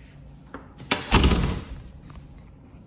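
A door handle clicks and the door swings shut.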